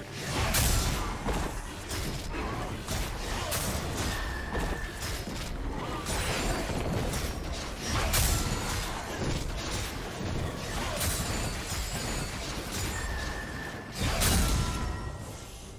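Game sound effects of spell impacts and attacks crackle and whoosh repeatedly.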